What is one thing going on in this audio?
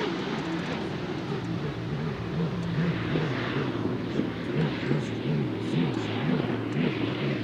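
A racing boat's engine roars loudly as it speeds past.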